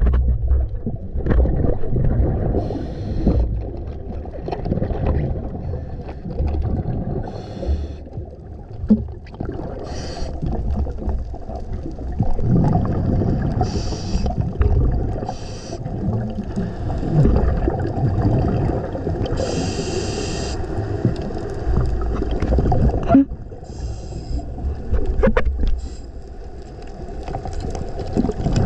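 Water rushes and rumbles steadily underwater.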